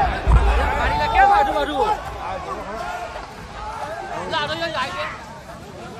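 Men talk excitedly nearby.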